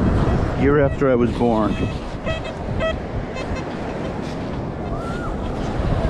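A metal scoop digs into wet sand.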